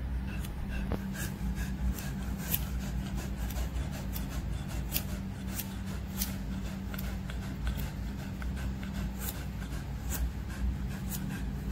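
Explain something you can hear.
Scissors snip through the fur on a dog's paw.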